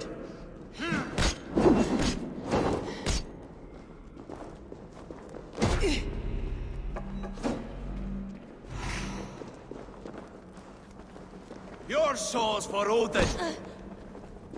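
A man grunts and shouts with effort while fighting.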